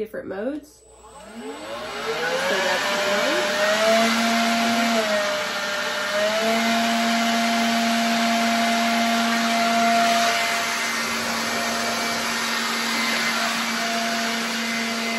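A leaf blower whirs loudly and steadily.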